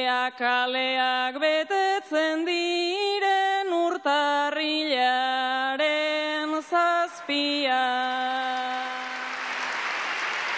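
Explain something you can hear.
A young woman sings solo into a microphone.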